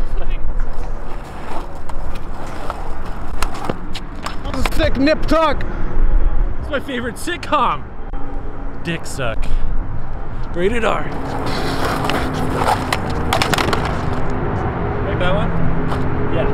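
Scooter wheels rattle and roll over concrete.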